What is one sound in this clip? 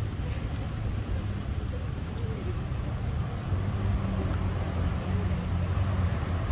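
A monkey chews soft fruit wetly.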